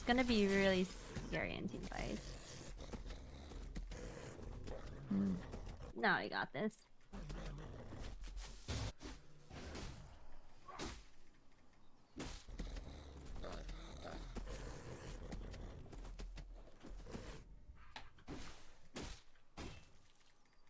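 Video game sound effects whoosh and clash in quick bursts.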